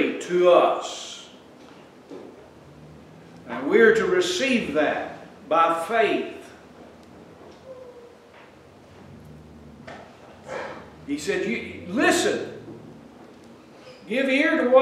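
An older man preaches with animation through a microphone, pausing often.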